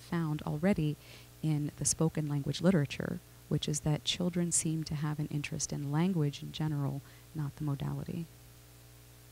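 A middle-aged man lectures calmly through a microphone.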